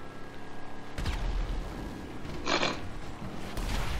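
An explosion booms ahead.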